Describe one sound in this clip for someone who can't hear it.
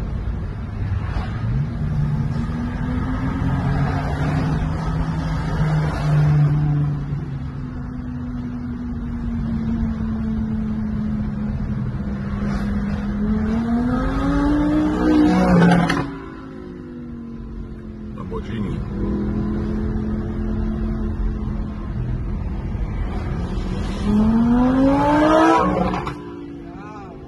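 Sports car engines roar and rev loudly nearby.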